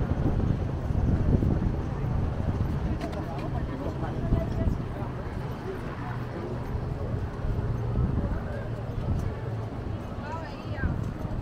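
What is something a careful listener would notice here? Adults chat nearby as they walk past.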